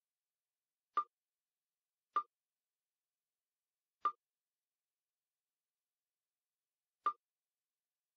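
Short electronic game clicks sound now and then.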